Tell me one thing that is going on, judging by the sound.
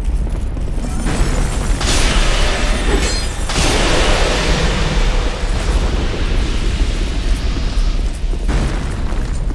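A magic spell bursts with a rushing hiss.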